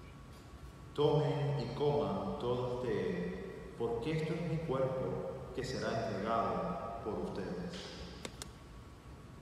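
A man speaks quietly and steadily into a microphone in an echoing hall.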